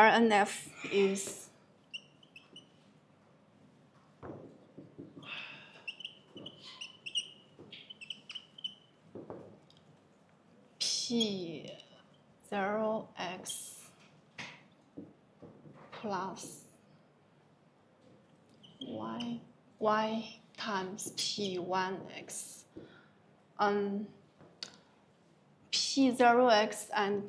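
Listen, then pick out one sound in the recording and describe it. A young woman speaks calmly, as if explaining.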